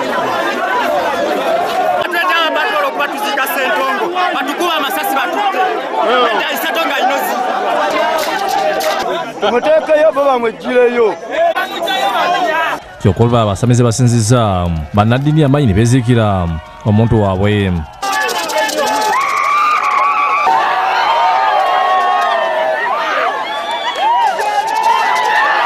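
A crowd of people talks and murmurs outdoors.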